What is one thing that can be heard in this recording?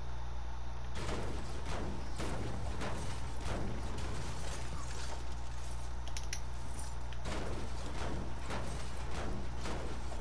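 A pickaxe strikes metal in repeated clanging blows.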